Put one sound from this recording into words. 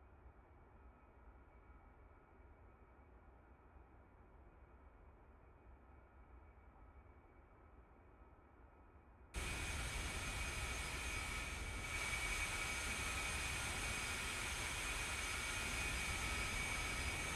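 A jet engine hums, muffled at first, then roars loud and steady.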